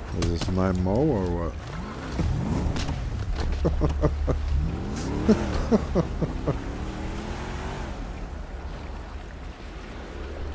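A car engine rumbles nearby.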